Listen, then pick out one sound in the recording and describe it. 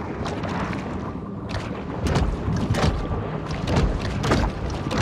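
Water swirls and bubbles around a swimmer stroking underwater.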